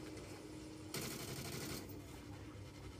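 Gunfire crackles from a video game over television speakers.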